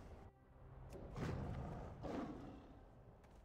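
A magic spell whooshes loudly.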